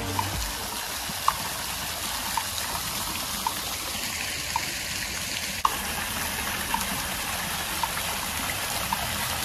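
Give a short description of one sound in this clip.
Water from a fountain splashes steadily into a pool.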